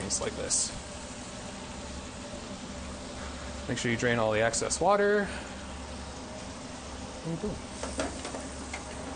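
A metal strainer clinks against a pot.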